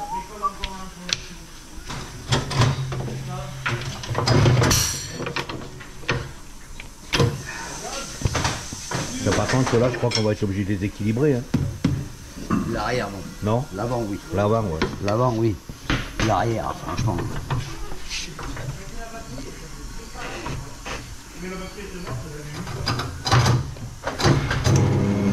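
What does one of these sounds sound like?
Metal tools clink and knock against a wheel.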